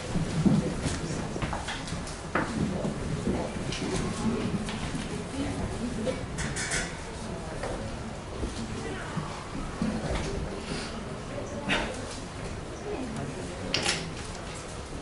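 Knocks and thumps come as a microphone stand is adjusted.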